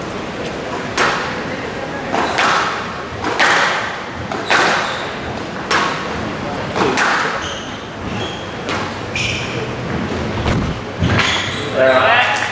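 A squash racquet strikes the ball with sharp cracks in an echoing court.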